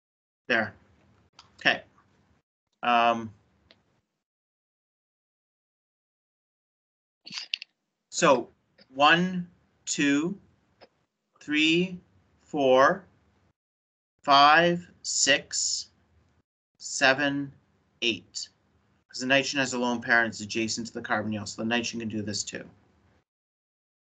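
A man speaks calmly over an online call, with pauses.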